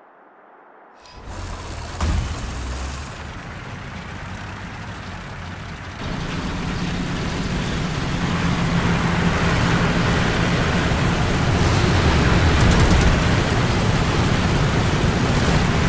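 A tank engine rumbles loudly.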